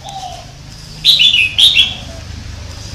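A bird sings loud, sharp whistling calls close by.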